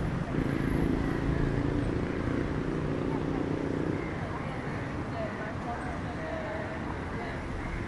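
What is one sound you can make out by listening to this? Young people chat nearby as they walk past.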